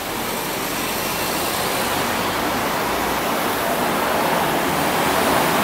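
A bus hums as it drives slowly along a street, growing louder as it nears.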